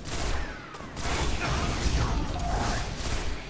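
A crackling energy blast bursts with a deep boom.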